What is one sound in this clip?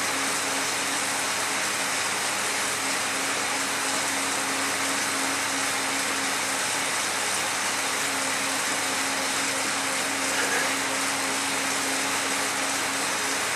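A bicycle trainer whirs steadily as a rider pedals hard.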